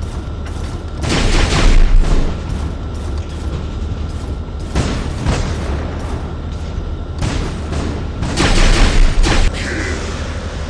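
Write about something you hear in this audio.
Heavy guns fire in loud, roaring bursts.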